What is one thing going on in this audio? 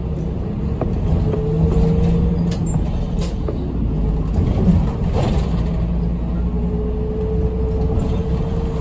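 A bus engine whines, with its pitch rising as the bus speeds up.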